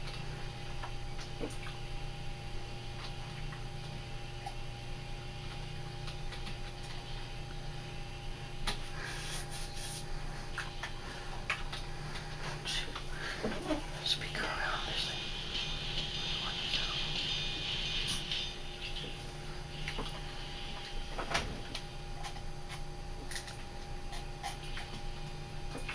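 A steam locomotive engine rumbles steadily.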